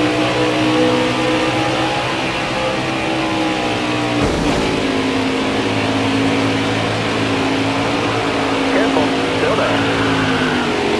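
A racing engine roars steadily at high speed.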